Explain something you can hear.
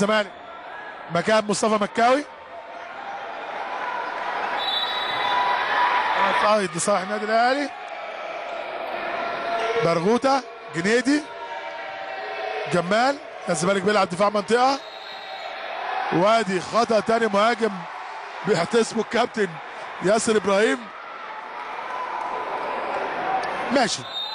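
A large crowd roars in an echoing indoor arena, swelling and fading.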